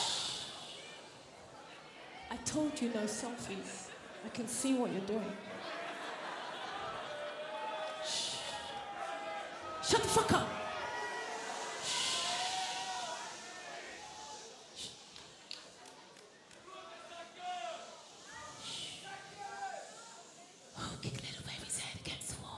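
A man sings into a microphone through loudspeakers in a large hall.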